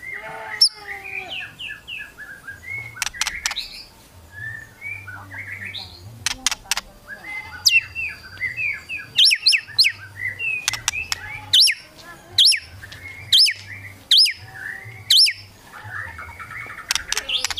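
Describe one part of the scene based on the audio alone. A songbird sings loud, varied whistles and chirps close by.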